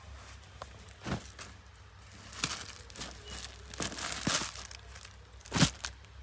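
Fabric rustles as it is handled close by.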